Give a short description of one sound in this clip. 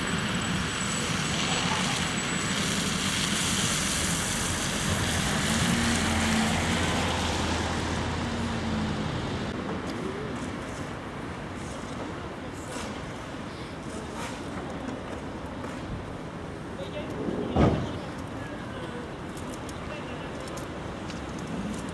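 A tram hums softly as it slowly approaches.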